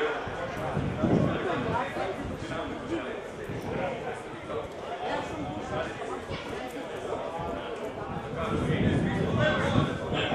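Men shout and call to each other outdoors at a distance.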